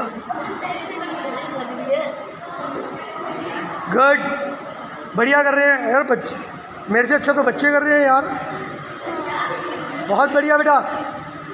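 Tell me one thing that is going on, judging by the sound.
Many children chatter softly in the background.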